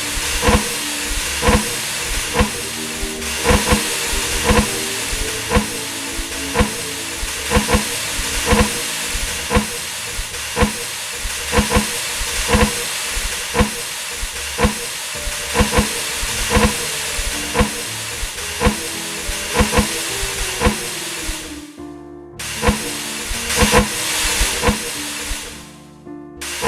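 Metal pistons slide up and down with regular mechanical clunks.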